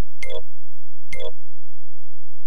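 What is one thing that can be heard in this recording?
Short electronic beeps sound as a game menu is clicked through.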